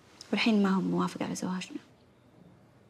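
A young woman speaks calmly and earnestly close by.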